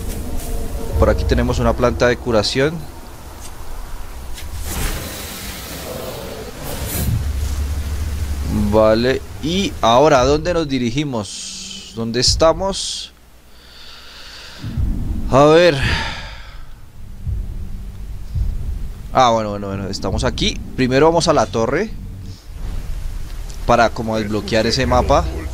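A young man talks into a microphone, close up.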